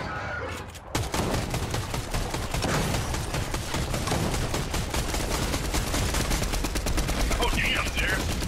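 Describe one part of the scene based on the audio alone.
Automatic guns fire in rapid bursts.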